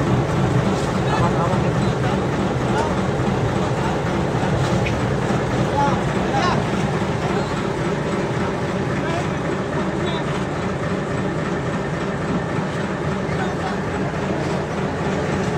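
A boat engine drones.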